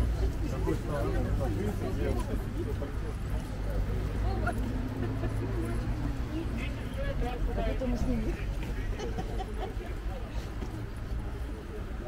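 Footsteps shuffle on pavement.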